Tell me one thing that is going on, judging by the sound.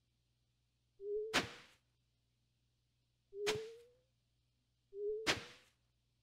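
A tool swooshes and thuds into soil several times.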